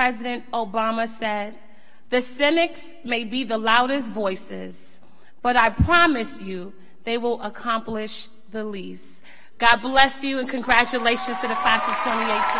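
A woman speaks with feeling into a microphone in a large echoing hall.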